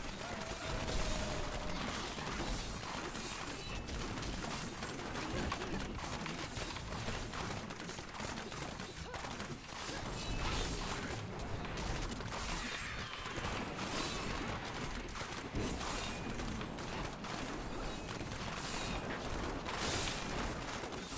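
Game spell effects crackle and blast continuously.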